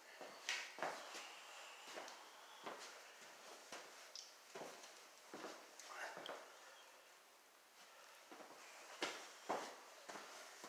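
Footsteps scuff on a gritty floor close by.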